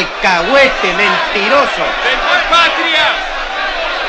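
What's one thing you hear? A middle-aged man shouts angrily close by.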